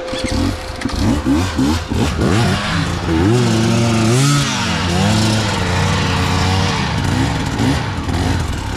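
Another dirt bike engine idles and revs nearby.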